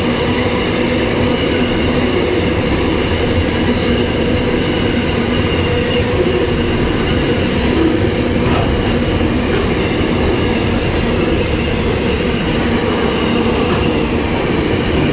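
A long freight train rumbles past close by, wheels clattering on the rails.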